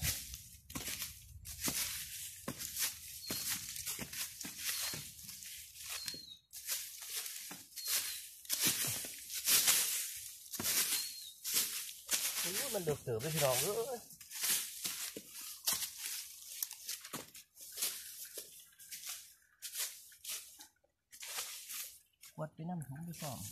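Dry leaves and twigs rustle and crackle.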